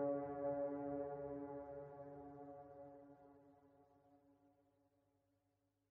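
Music plays steadily and slowly fades out.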